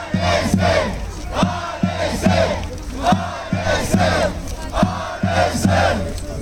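A large crowd chants loudly and rhythmically outdoors.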